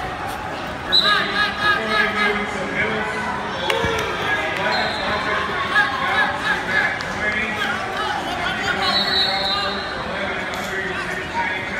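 A man shouts encouragement loudly close by.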